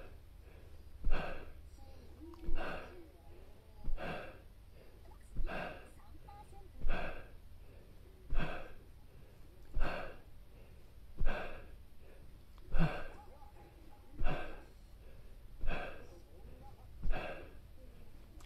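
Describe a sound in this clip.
A man breathes out sharply in a steady rhythm, close by.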